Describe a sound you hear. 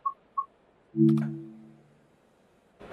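A train's door warning chime sounds with a short pitched tone.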